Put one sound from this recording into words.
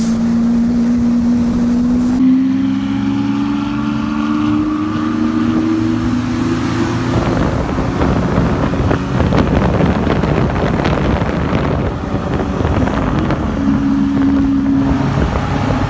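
Wind rushes past on a moving road.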